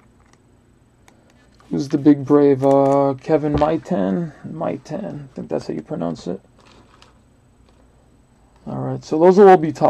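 A plastic wrapper crinkles as hands handle it.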